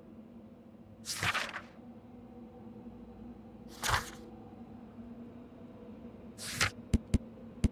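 Paper pages rustle as a book's page turns.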